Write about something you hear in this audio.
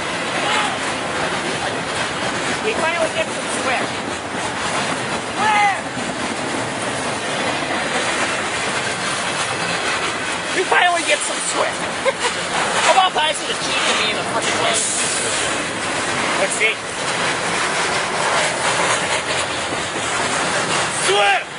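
Train wheels squeal sharply on the rails now and then.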